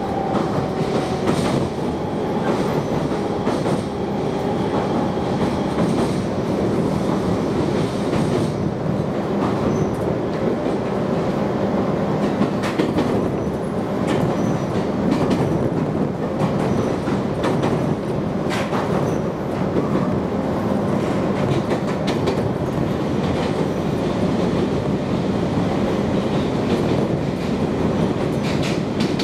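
An electric passenger train rumbles along the rails, heard from inside a carriage.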